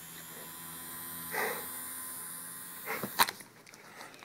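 A small electric fan whirs up close.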